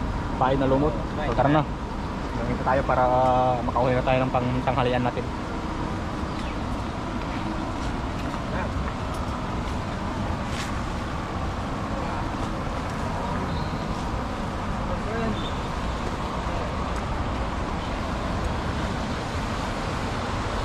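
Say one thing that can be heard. Steady wind blows outdoors.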